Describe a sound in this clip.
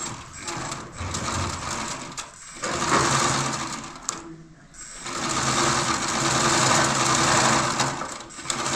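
A hand-crank sewing machine whirs and clatters as it stitches cloth.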